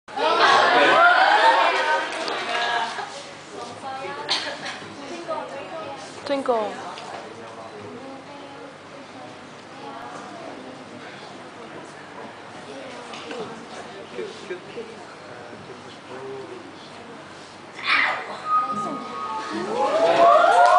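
Young women talk and laugh loudly in an echoing hall.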